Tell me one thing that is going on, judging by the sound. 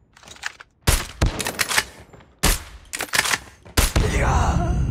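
Rifle shots crack loudly in quick bursts.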